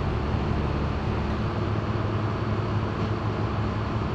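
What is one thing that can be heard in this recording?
An air-powered tool whirs against metal.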